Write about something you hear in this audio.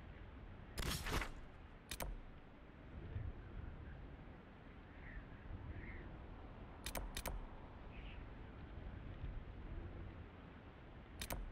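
Short menu clicks sound several times.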